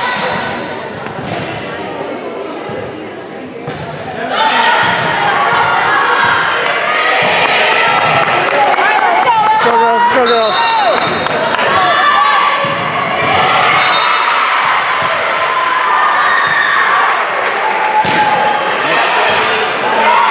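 Teenage girls chatter and cheer loudly in a large echoing gym.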